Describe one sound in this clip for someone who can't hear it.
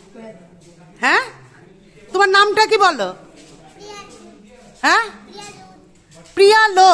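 A young girl speaks and squeals in a high, excited voice close by.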